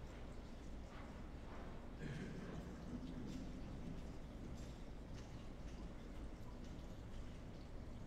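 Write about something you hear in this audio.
Footsteps cross a hard floor in a quiet echoing hall.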